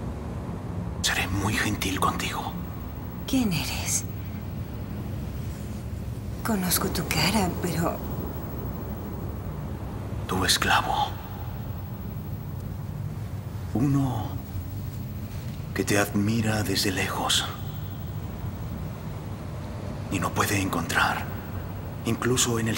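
A man speaks slowly and calmly.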